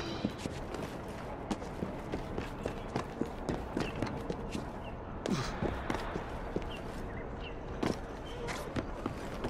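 Footsteps thud and scrape quickly across a rooftop.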